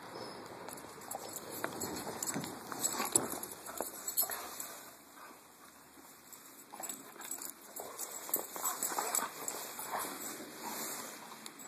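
A dog's paws crunch and scuffle in snow.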